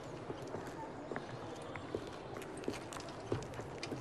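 Footsteps tap on stone nearby.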